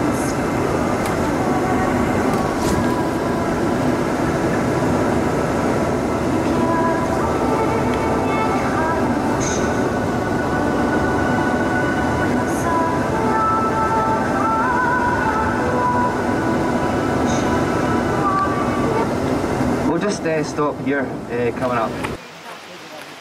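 A vehicle's engine drones steadily from inside as it drives along a road.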